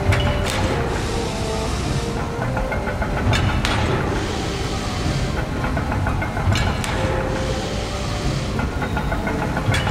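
Machinery clanks at a steady, repeating beat.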